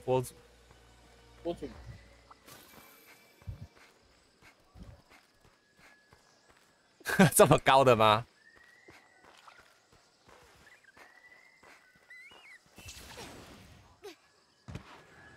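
Footsteps patter quickly over dirt and grass.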